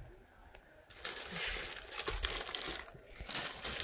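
Plastic wrapping rustles as clothes are handled.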